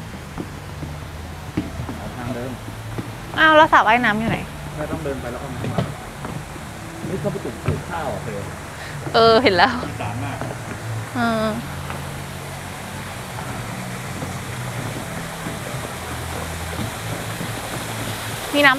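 Footsteps tread softly along a paved path outdoors.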